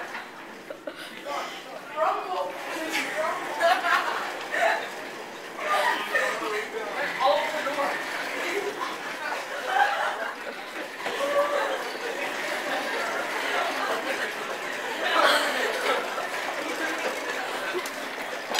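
Teenage boys talk and laugh nearby.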